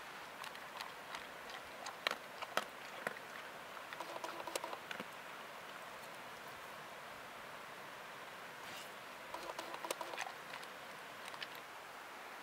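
A dog crunches dry food from a bowl.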